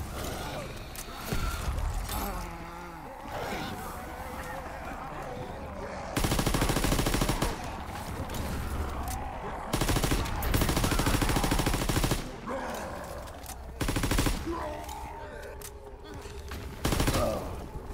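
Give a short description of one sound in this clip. Growling creatures snarl and moan.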